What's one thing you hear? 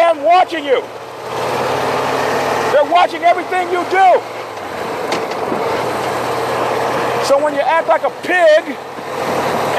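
A man speaks with animation close to a microphone, outdoors.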